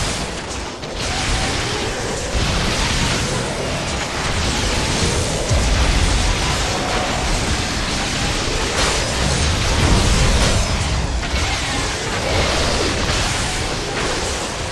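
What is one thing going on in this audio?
Weapons clash and spells crackle in a fierce game battle.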